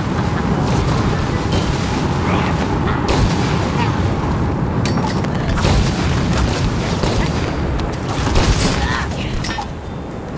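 Game blasts and explosions go off in quick succession.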